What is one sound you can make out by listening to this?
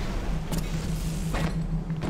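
An electric bolt crackles and zaps.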